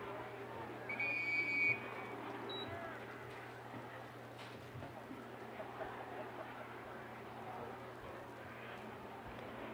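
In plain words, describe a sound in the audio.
Young women shout to each other faintly across an open field outdoors.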